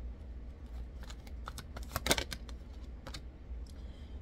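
Playing cards riffle and snap together as they are shuffled.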